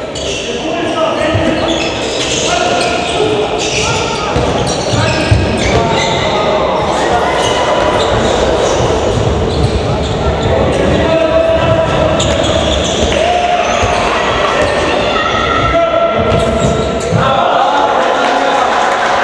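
Sneakers squeak on a hard court floor in a large echoing hall.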